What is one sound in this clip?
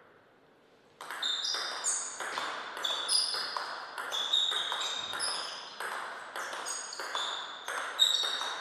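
A table tennis ball is struck back and forth in a quick rally, clicking off paddles and the table.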